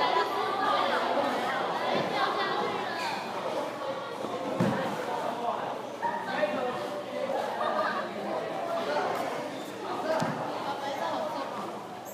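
Footsteps thump on a padded floor as young men run.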